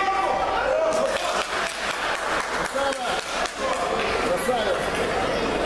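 A crowd of spectators applauds.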